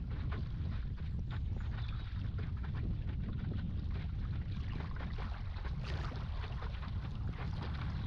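Water splashes and churns behind a moving boat.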